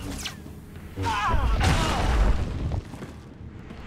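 A blast bursts with a loud crackling roar.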